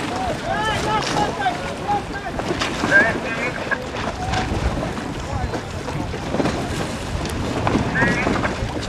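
Water splashes and slaps against boat hulls.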